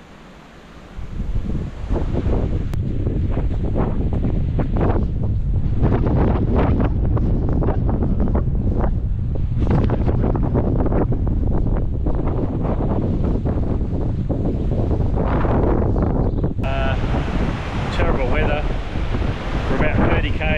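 An elderly man talks calmly close to the microphone, outdoors in strong wind.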